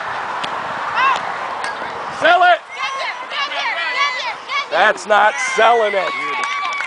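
Young women cheer and shout excitedly from nearby.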